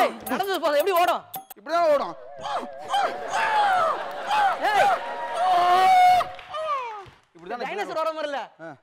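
A young man shouts with animation.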